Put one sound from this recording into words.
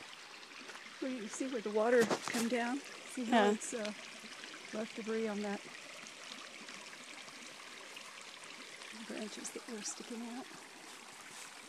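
A woman speaks close by, calmly.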